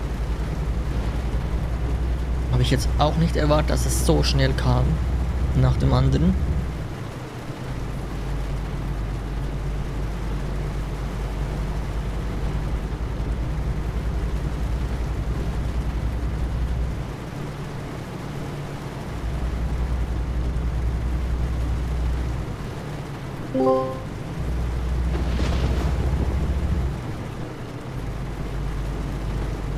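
A truck engine drones low and steady.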